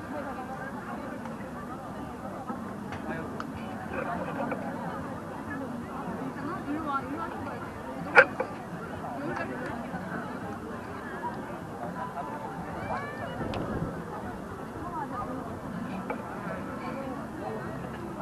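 A crowd of people chatters outdoors at a distance.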